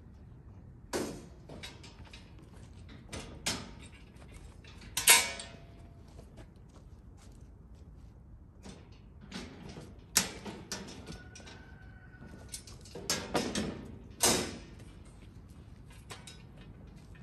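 Firewood logs thud and clatter as they are loaded onto a metal cart.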